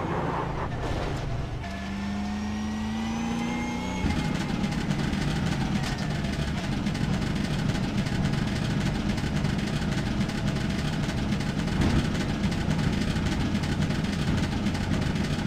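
A race car engine drones at a low, steady pace.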